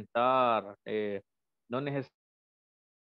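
A young man speaks calmly over an online call.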